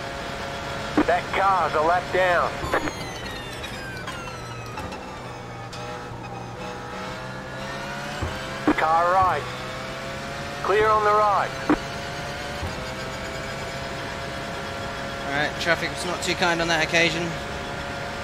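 A racing car engine blips sharply in short bursts while shifting down.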